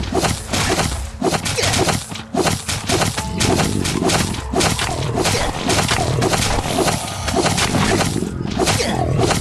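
Zombies growl and snarl.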